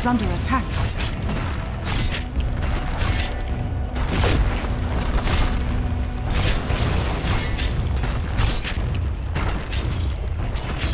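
Fantasy battle sound effects whoosh, crackle and strike repeatedly.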